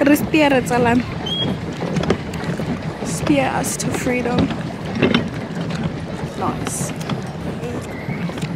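Water splashes and churns under a pedal boat's paddle wheel.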